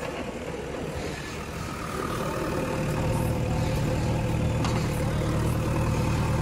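A backhoe bucket scrapes and digs into dry earth.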